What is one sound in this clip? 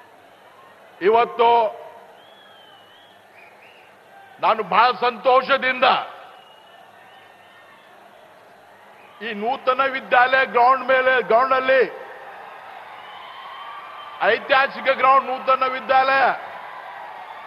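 A middle-aged man gives a loud speech through a microphone and loudspeakers, in bursts with pauses.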